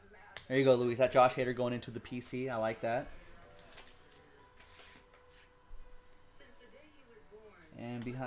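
Paper and card sleeves rustle and slide in hands.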